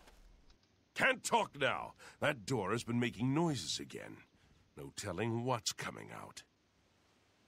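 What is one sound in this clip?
A man speaks calmly and closely, in a low voice.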